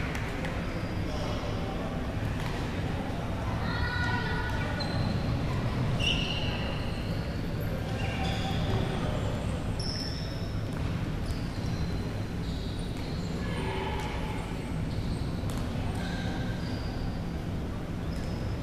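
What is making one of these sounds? A crowd of people chatters throughout a large echoing hall.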